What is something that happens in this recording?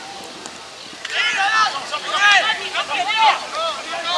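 A crowd of spectators cheers and shouts excitedly.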